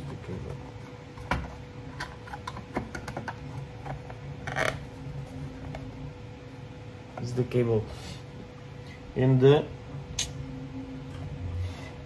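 Small plastic parts click and tap as hands fit them together.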